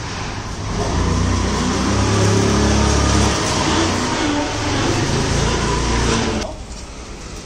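A motor scooter engine hums as it rides past.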